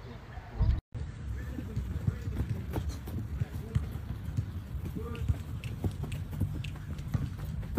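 Footsteps patter on the ground.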